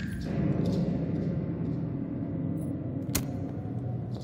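A match strikes and flares into flame.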